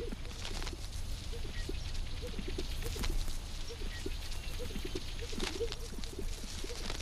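Sage grouse make rapid low bubbling and popping calls.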